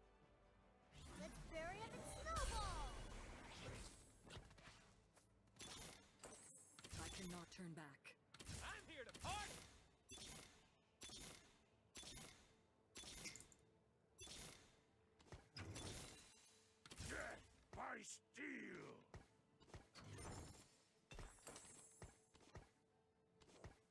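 Electronic game effects whoosh and chime in quick, repeated bursts.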